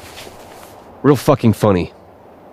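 A man answers in a deep voice.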